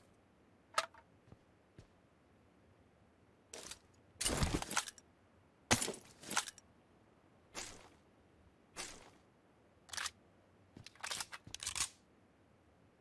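Items rustle and clatter as they are picked up.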